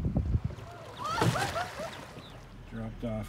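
Water splashes loudly as a boy falls off a paddle board.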